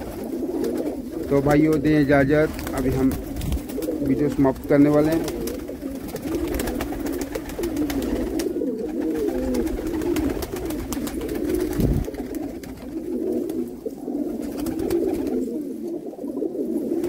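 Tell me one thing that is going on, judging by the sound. Many pigeons coo in a low, steady warble.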